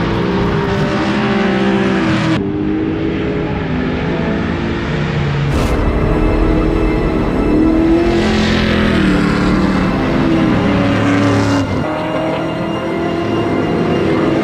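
Car engines roar and rev hard, rising and falling in pitch.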